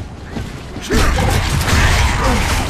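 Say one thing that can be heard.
An automatic rifle fires in bursts in a video game.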